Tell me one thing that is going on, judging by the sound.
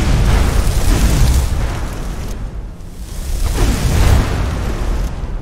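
A fireball bursts with a deep roaring whoosh.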